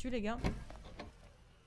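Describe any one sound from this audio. A young woman exclaims loudly close to a microphone.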